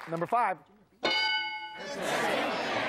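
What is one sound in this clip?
A bell chimes once.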